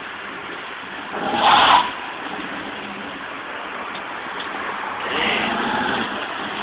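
A car engine revs loudly.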